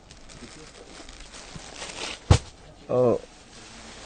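A plastic package crinkles as a man sets it down.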